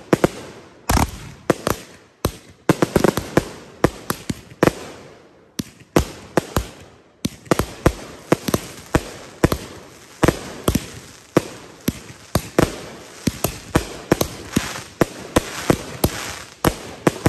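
Fireworks fizz and crackle as they shoot sparks.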